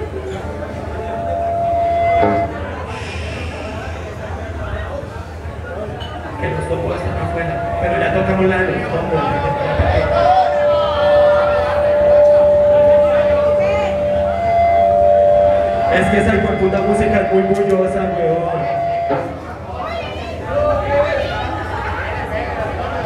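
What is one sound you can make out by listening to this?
Electric guitars play distorted, sustained notes.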